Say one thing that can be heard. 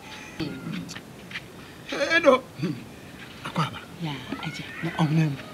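An elderly man speaks and laughs close by.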